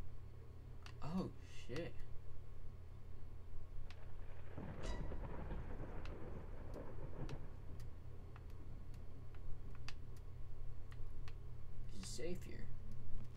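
A young man speaks briefly and quietly into a close microphone.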